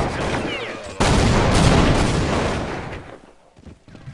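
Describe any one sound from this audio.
A grenade explodes with a loud, rumbling roar.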